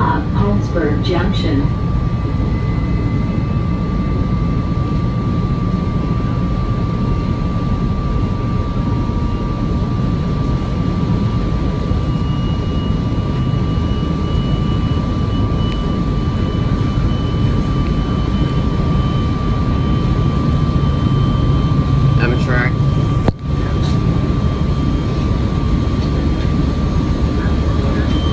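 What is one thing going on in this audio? Wheels clatter over the rail joints.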